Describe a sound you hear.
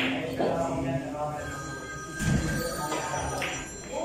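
A pool cue strikes a ball with a sharp click.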